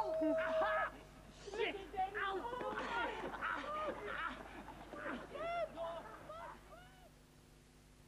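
Young men talk and shout excitedly nearby.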